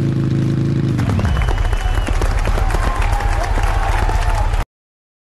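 Fireworks crackle and pop in quick bursts.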